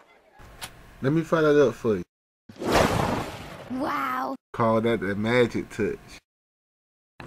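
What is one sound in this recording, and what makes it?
An elderly man talks with animation.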